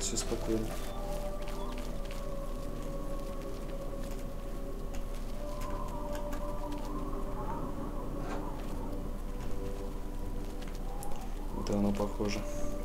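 Footsteps scrape over rocky ground.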